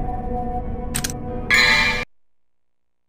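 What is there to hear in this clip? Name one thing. A short menu chime sounds twice.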